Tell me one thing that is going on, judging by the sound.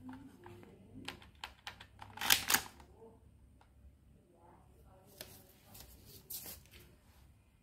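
A toy pistol fires with sharp snapping shots.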